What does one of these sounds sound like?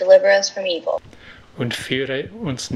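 An older man speaks calmly through an online call.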